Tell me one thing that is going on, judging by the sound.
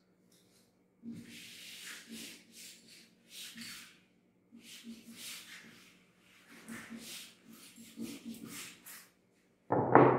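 A duster wipes across a whiteboard.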